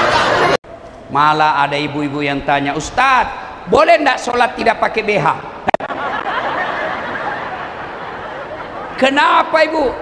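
A man speaks loudly and expressively into a microphone in a large hall.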